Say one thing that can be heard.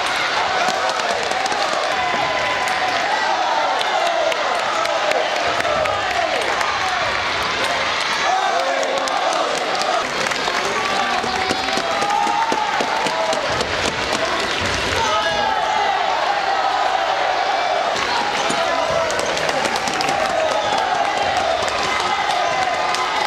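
A crowd of children shouts and cheers steadily in a large echoing hall.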